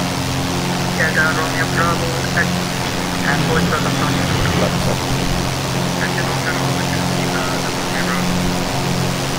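A young man talks calmly into a headset microphone.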